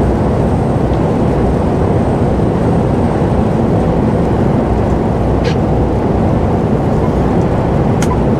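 Tyres roll and hiss on a wet road.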